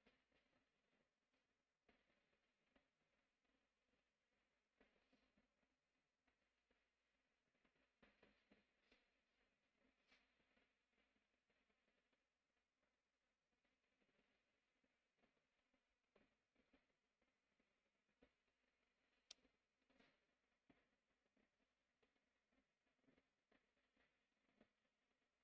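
A marker tip scratches and squeaks softly on paper.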